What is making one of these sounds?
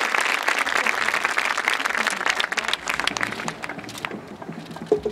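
A large crowd applauds and cheers outdoors, then fades down.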